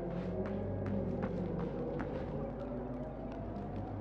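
A fire crackles in a metal barrel.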